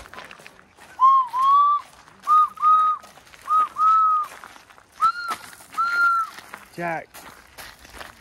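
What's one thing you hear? A young boy calls out loudly in high, sing-song shouts nearby.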